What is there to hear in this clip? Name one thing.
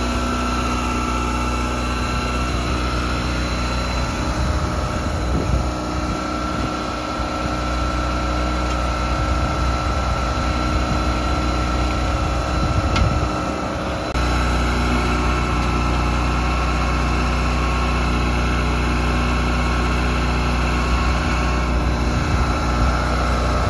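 An engine runs with a steady low drone outdoors.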